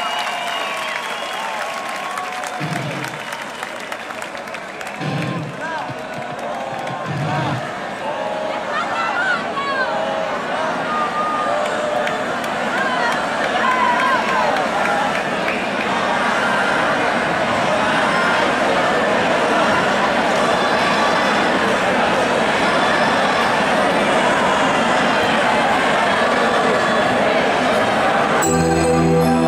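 A large crowd cheers, growing louder.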